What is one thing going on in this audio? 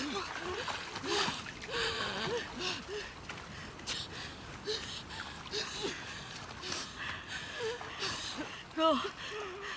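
Shallow water splashes and sloshes.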